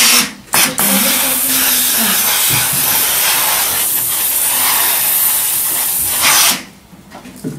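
A steam iron hisses loudly and steadily.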